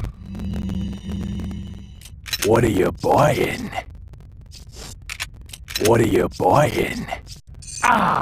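Menu clicks and chimes sound in quick succession.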